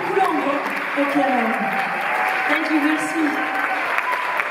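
A young woman sings into a microphone, heard through loudspeakers in a large echoing hall.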